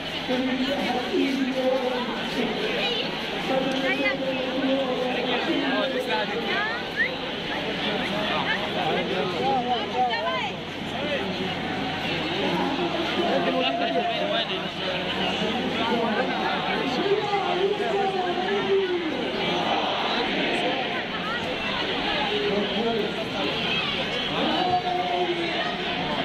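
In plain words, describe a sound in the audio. A large crowd of men chants and shouts loudly all around, outdoors.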